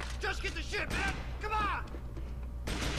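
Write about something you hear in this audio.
A man shouts urgently, heard close.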